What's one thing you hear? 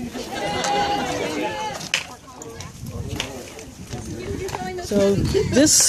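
Young men talk loudly and excitedly nearby, outdoors.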